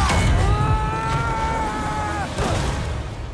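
A boy screams loudly.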